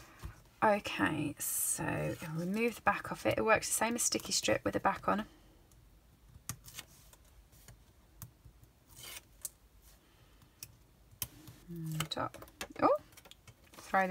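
A plastic frame taps and slides on a tabletop.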